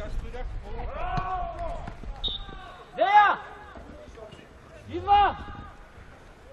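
Men shout loudly across an open outdoor pitch.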